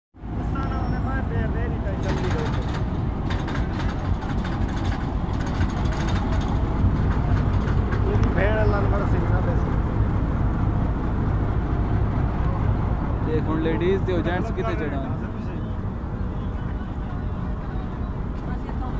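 A diesel locomotive rumbles past at close range.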